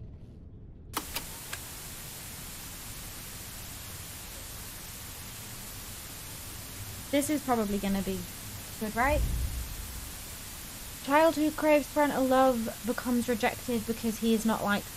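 A television hisses with static.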